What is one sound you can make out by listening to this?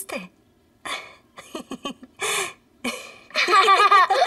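A young child giggles and laughs close by.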